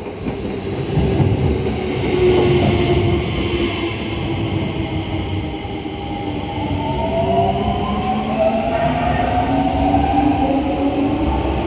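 Train wheels rumble loudly along the track close by.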